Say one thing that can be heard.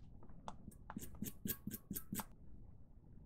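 Metal tweezers tick faintly against a small metal part.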